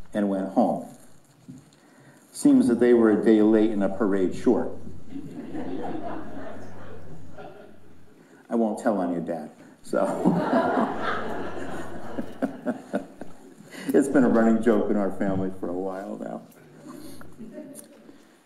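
A man speaks calmly through a microphone in a large echoing room.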